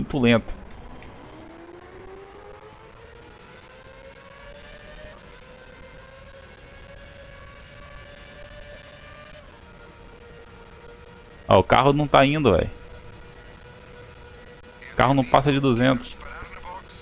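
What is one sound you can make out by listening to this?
A racing car engine whines and rises in pitch as it speeds up.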